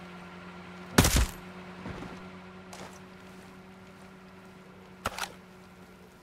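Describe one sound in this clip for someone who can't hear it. A silenced rifle fires a sharp shot.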